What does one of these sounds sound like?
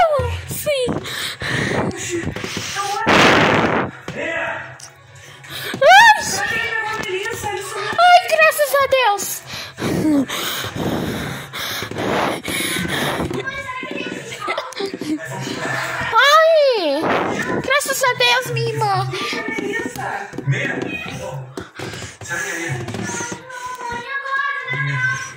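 A television plays in the room.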